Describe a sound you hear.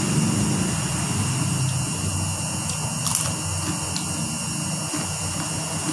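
A woman crunches on crispy crackers close by.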